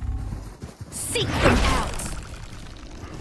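A loud magical whoosh bursts and rushes past.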